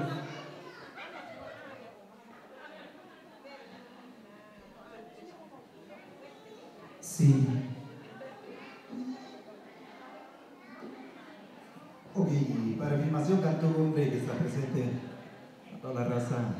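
A crowd of women, men and children chatter under a roof with some echo.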